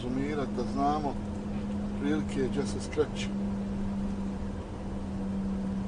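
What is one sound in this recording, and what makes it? A van's engine hums steadily as it drives along.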